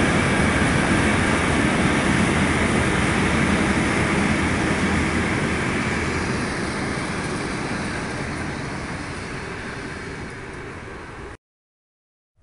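A freight train rumbles past nearby, then fades into the distance.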